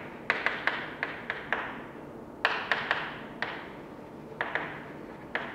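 Chalk taps and scratches sharply against a board in an echoing room.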